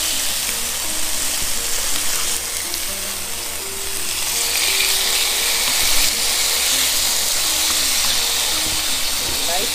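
Chicken sizzles steadily in a hot pan.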